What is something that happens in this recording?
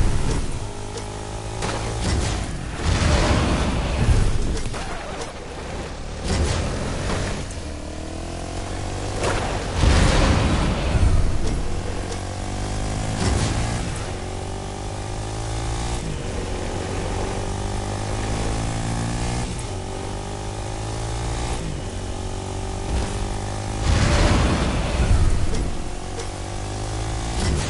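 A quad bike engine hums and revs steadily.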